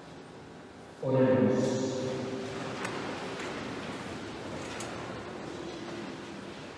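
A man chants into a microphone, echoing through a large hall.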